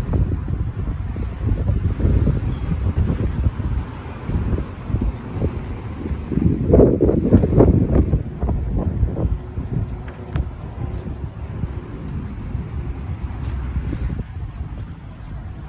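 Wind blows hard outdoors, rumbling and buffeting.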